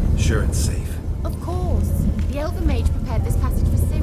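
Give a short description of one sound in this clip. A magic portal hums with a low, steady drone.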